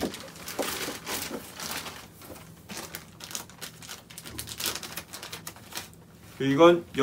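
Paper and plastic rustle as hands handle small items.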